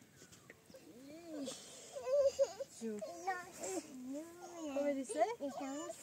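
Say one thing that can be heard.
Young children talk and call out excitedly close by.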